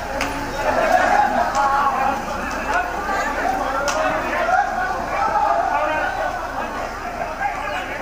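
A crowd of men shouts and clamours at a distance.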